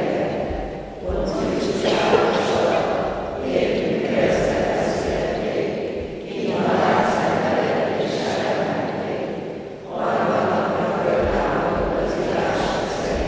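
A congregation of men and women sings together in a large echoing hall.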